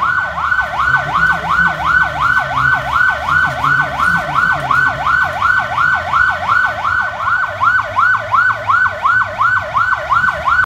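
An ambulance siren wails rapidly and steadily close by.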